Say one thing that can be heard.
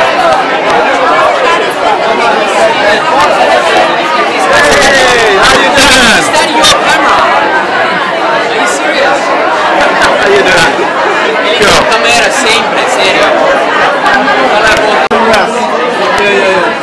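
A crowd of young people chatters loudly all around, close by.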